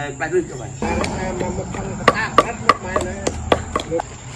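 A wooden pestle pounds rhythmically in a mortar.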